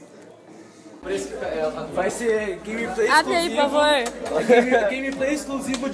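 Several people talk loudly nearby.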